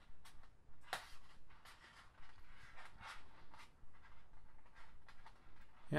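Plastic cords rustle and creak as fingers weave them.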